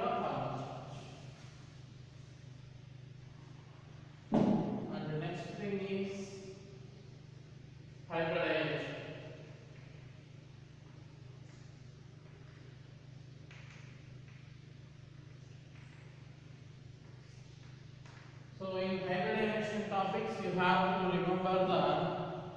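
A man speaks in bursts, lecturing calmly.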